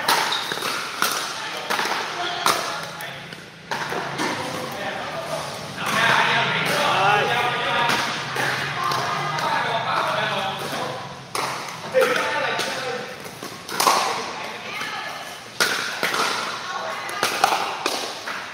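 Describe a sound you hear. Paddles strike a plastic ball with sharp pops in an echoing hall.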